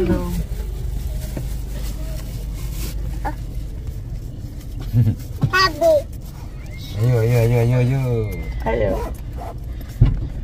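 A car engine hums steadily in the background.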